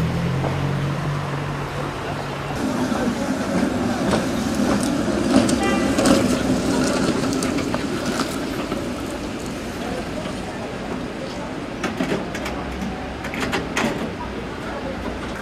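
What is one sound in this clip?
Traffic hums along the street outdoors.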